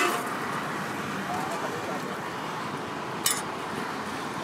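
A metal ladle scrapes and clinks against a steel pot.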